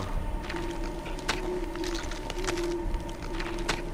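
A body thuds to the ground.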